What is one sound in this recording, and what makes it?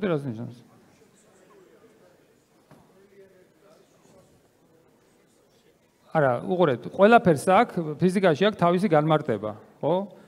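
A man speaks calmly through a microphone in a large hall, pausing between phrases.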